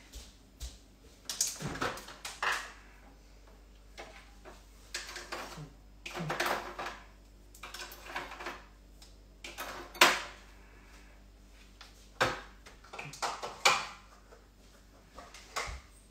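Dishes and utensils clatter and knock.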